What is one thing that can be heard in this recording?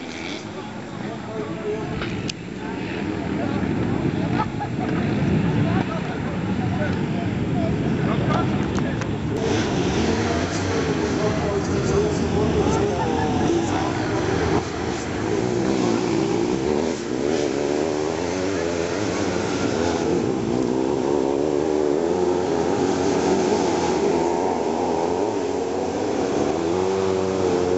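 Off-road motorbike engines roar and rev as they race across open ground.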